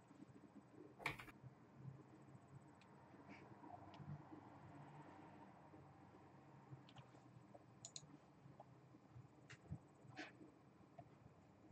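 A young man speaks quietly and close to a microphone.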